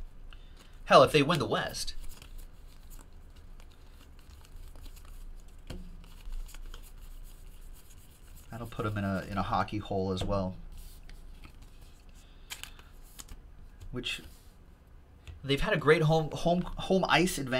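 Trading cards shuffle and flick between fingers.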